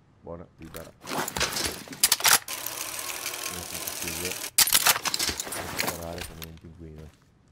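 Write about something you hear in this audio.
A motorised rope winch whirs and rattles loudly.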